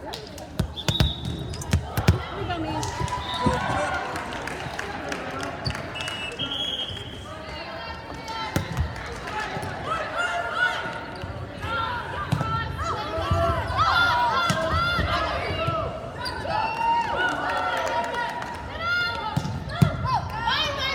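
Spectators cheer and call out in a large echoing gym.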